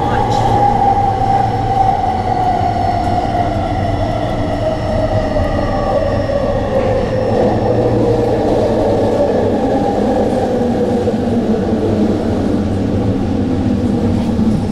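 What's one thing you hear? A train's electric motors whine, the pitch falling steadily as it slows into a station.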